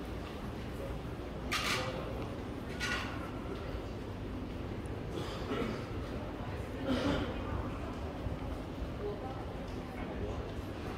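Footsteps walk across a hard tiled floor in a large open space.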